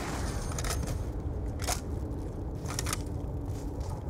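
A gun is reloaded with metallic clicks.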